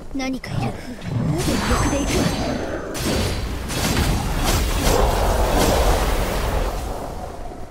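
A blade slashes and strikes a creature with heavy impacts.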